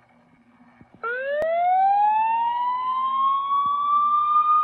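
A siren starts up and wails, rising in pitch.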